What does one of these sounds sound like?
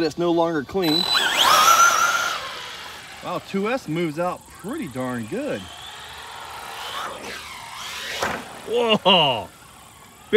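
A small electric motor whines and revs up as a toy car speeds off.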